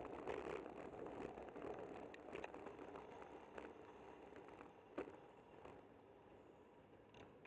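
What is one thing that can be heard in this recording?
Wind rushes past steadily outdoors.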